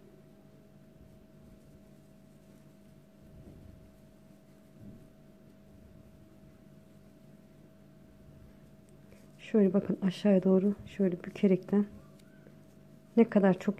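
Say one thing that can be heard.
A crochet hook softly works through yarn.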